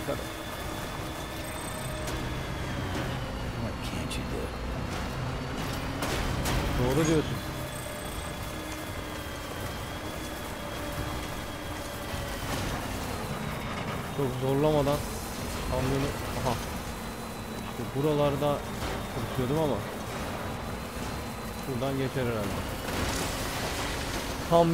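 A truck engine hums steadily as it drives over rough ground.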